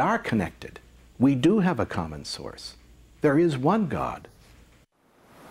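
A middle-aged man speaks calmly close to a microphone.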